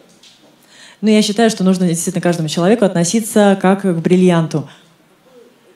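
A woman speaks loudly and clearly through a microphone.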